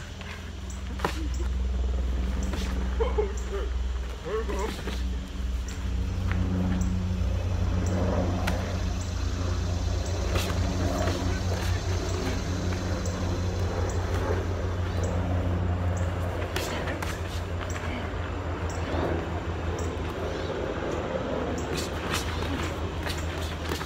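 Boxing gloves thump against each other in quick bursts.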